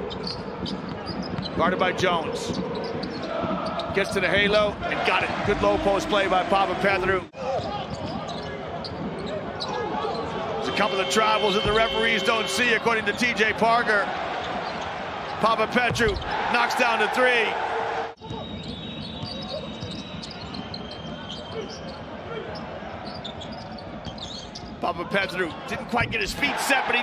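A crowd cheers and roars in a large echoing arena.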